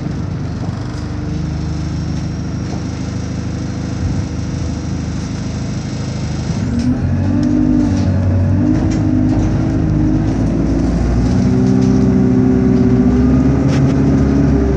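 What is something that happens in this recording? Loose fittings rattle and knock inside a moving bus.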